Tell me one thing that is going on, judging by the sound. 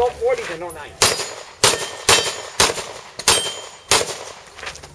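A handgun fires a rapid series of shots outdoors.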